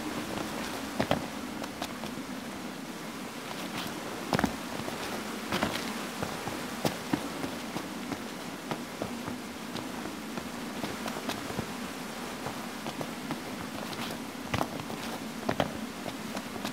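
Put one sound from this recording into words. Footsteps thud on rock.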